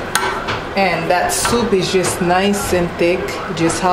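A metal spoon scrapes inside a roasting pan.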